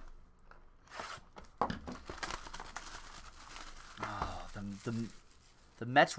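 Plastic wrap crinkles and tears as it is pulled off a box.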